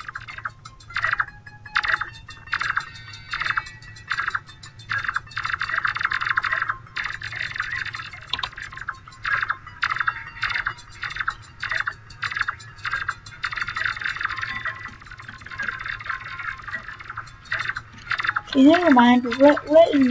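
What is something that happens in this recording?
Quick bright harp-like notes chime over and over as a magic weapon fires.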